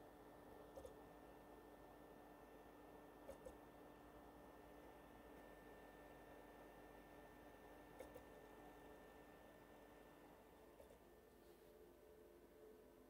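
A computer hums steadily with a faint whine.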